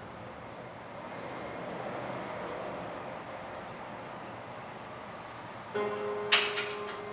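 Fingers tap softly on a laptop keyboard.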